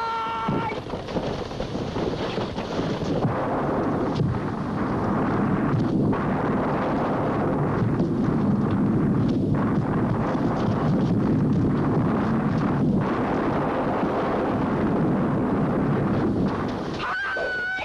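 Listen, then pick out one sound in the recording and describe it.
A heavy log rumbles and thuds as it rolls down a slope.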